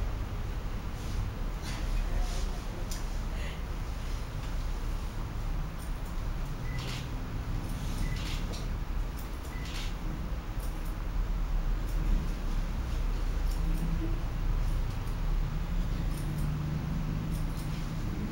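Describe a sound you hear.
Scissors snip hair in quick, sharp clicks.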